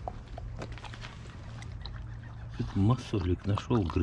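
A dog laps water from a puddle.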